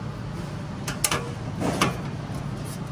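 A metal latch clicks open.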